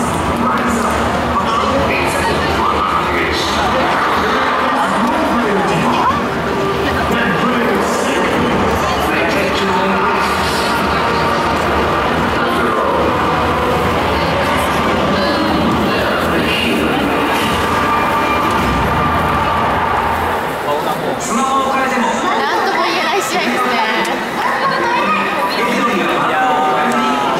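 A stadium crowd chants and cheers in the distance.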